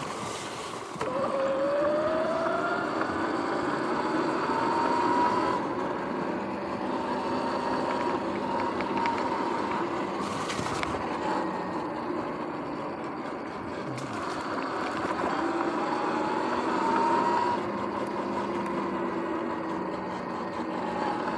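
An electric motor whines, rising in pitch as a bike speeds up.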